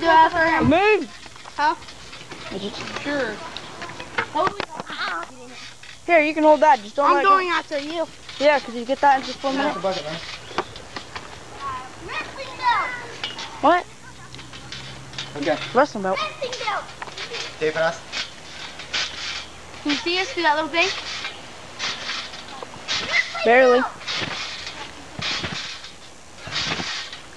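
Young men talk and shout with animation close by, outdoors.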